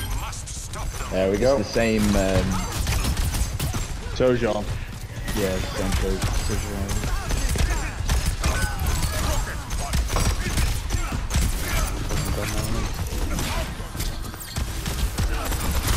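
Game weapons fire in rapid bursts with electric zaps.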